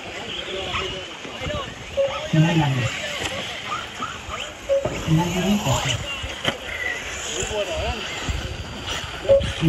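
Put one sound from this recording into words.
Small electric model cars whine as they race over a dirt track.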